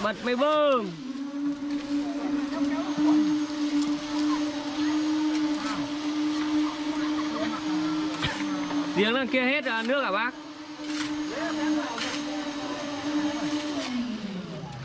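A cement mixer motor hums steadily, then winds down.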